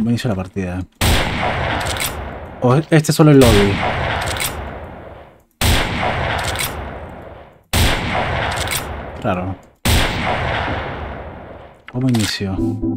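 A rifle fires loud shots that echo and slowly fade.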